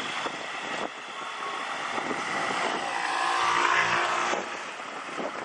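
A scooter engine putters past close by.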